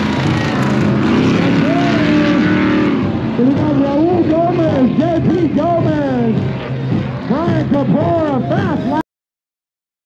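Off-road race cars roar and rev in the distance.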